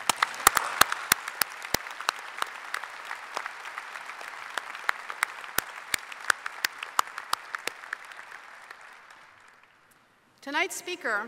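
A crowd applauds in a large echoing hall and slowly dies down.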